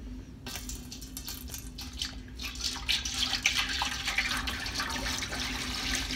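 Water pours into a large metal pot.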